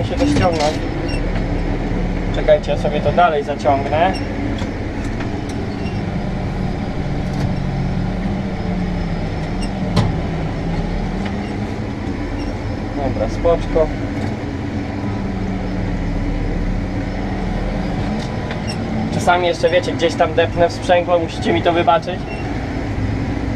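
A tractor engine drones steadily from inside the cab.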